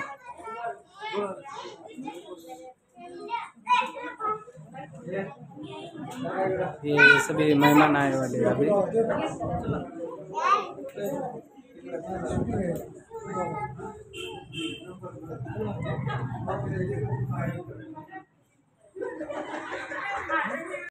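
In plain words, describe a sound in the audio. Several people chatter nearby.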